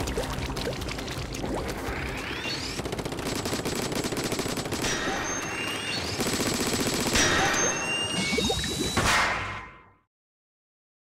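Wet ink splatters and splashes in loud bursts.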